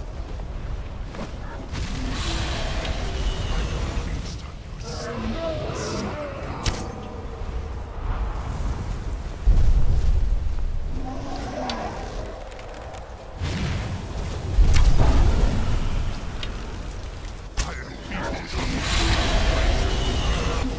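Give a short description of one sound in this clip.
Magic lightning crackles and buzzes.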